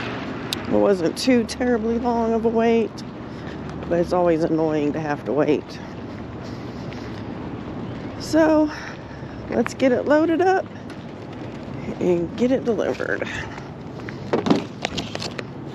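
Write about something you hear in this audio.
Footsteps scuff on pavement outdoors.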